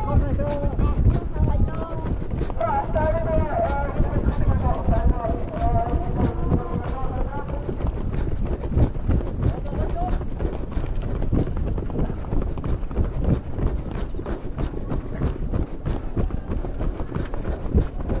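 Running footsteps patter steadily on a track.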